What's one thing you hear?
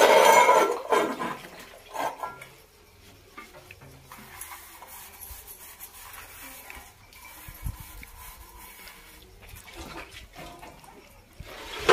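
Water splashes as dishes are rinsed.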